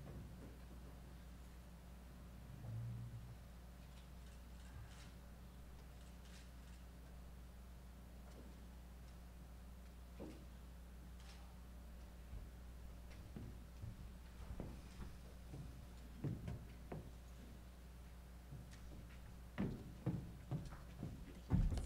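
A crowd murmurs quietly in a large room.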